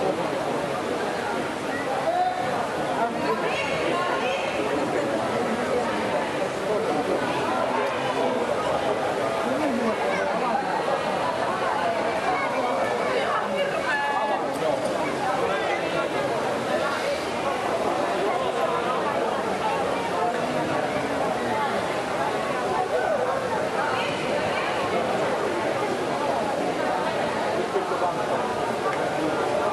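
A crowd of spectators chatters throughout a large echoing indoor pool hall.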